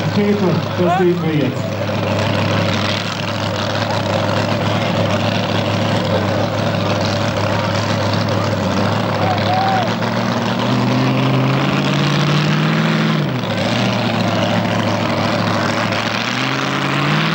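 A loud tractor engine idles and revs outdoors.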